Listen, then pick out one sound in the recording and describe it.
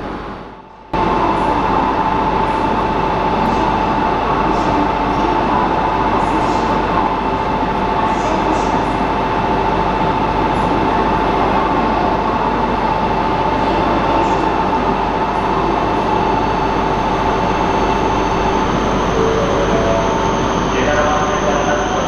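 A stopped train hums steadily beside a platform.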